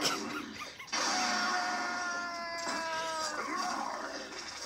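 A bright whooshing game effect rings out through a television speaker.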